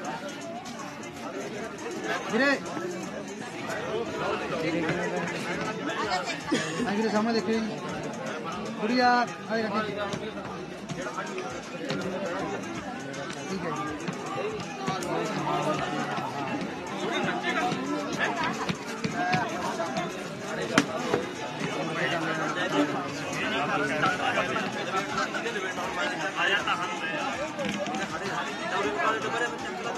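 Several men and women talk and call out nearby in a small crowd.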